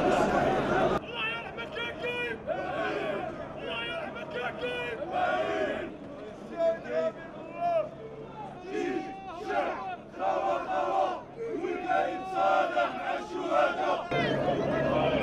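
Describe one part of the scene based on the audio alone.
Men in a crowd shout slogans close by with animation.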